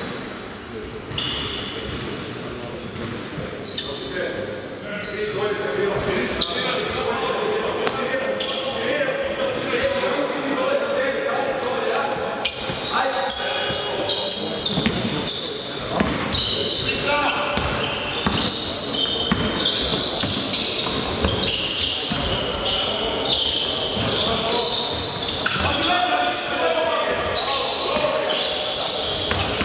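Sneakers squeak sharply on a wooden court, echoing in a large hall.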